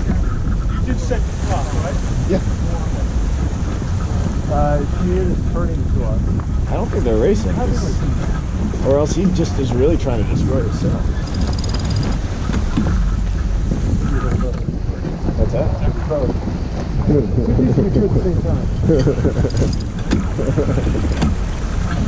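Men talk to one another nearby, with voices partly drowned by wind.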